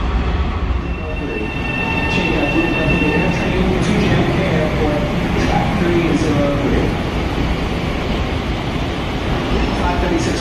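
A parked train's engine hums steadily.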